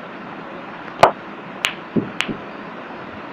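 Billiard balls clack together as a cue ball strikes.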